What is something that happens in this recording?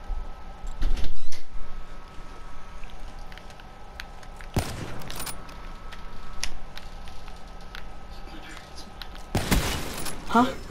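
A sniper rifle fires loud single shots.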